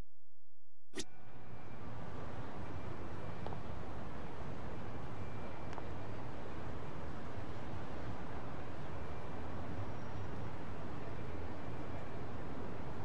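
Steady outdoor city hum fills the air.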